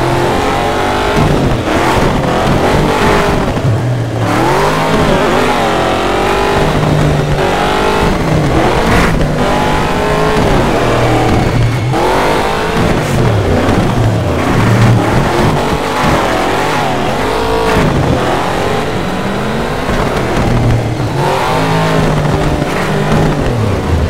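A truck engine roars and revs up and down at high speed.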